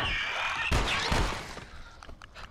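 A blade stabs into a body with wet thuds.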